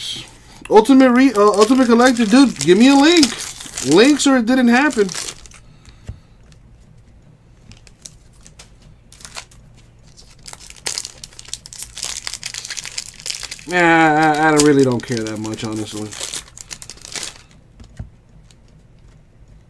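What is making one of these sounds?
A foil wrapper crinkles and rustles as hands handle it.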